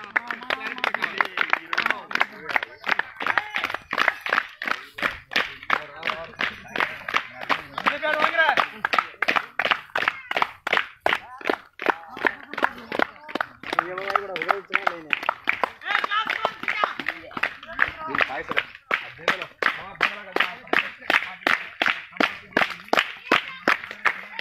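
Men clap their hands in a steady, quick rhythm.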